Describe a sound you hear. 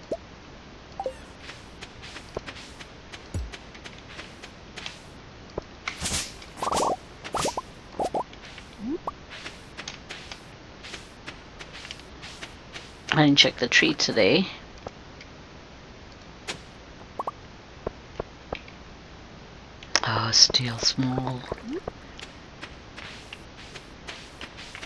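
Soft footsteps crunch on snow in a quick patter.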